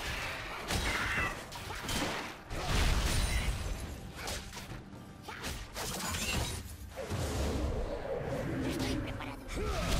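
Spell effects whoosh and crackle in a video game.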